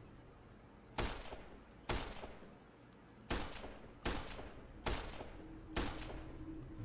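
A rifle fires single shots at a steady pace.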